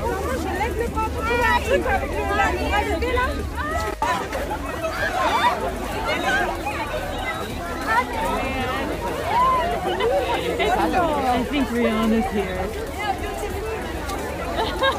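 A large crowd of women and men chatters and shouts excitedly outdoors.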